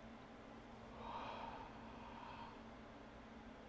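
A young man lets out a long, loud groan close by.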